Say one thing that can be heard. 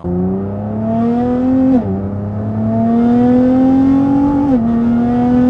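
A car engine revs higher and higher, dropping sharply at each gear change.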